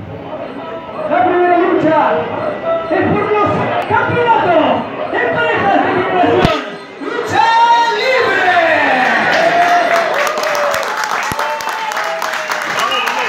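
A man announces loudly through a microphone in an echoing hall.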